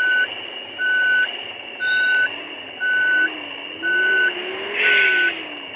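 A bus engine idles with a low hum that rises slightly.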